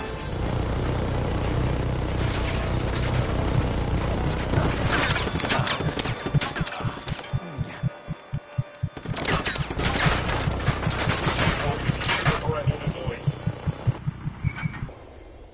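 Heavy gunfire rattles in rapid bursts.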